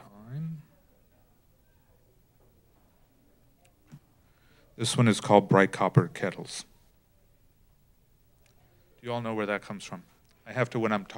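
An older man speaks slowly and deliberately into a microphone, with pauses.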